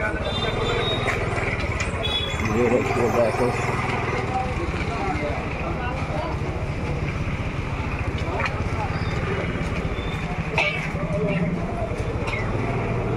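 A busy street crowd murmurs and chatters all around.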